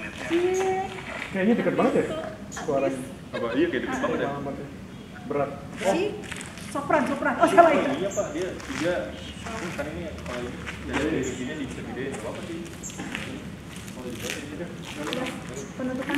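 A woman talks with animation close by, outdoors.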